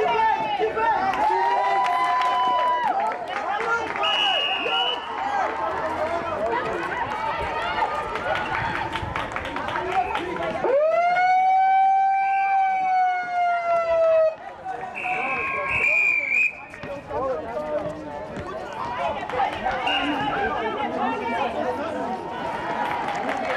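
Young women shout and call out to each other.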